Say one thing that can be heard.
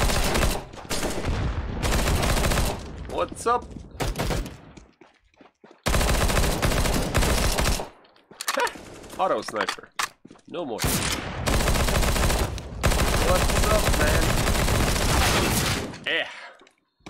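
Rapid gunshots crack loudly.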